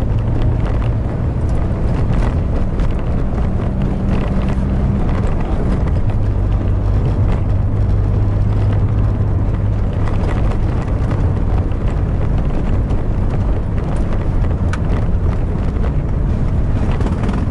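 A car engine hums steadily and shifts pitch as the car drives.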